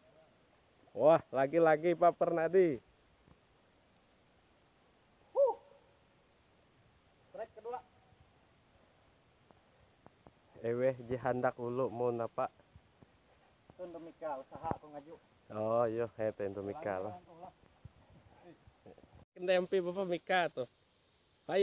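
A young man talks calmly close by, in short bursts.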